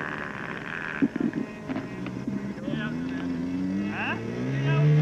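A model airplane engine sputters to life and revs up with a rising buzz.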